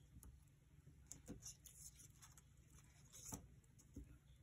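A glue stick rubs across paper.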